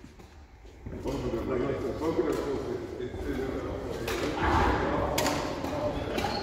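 Two men talk casually close by in an echoing hall.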